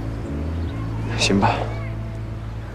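A young man speaks briefly and calmly.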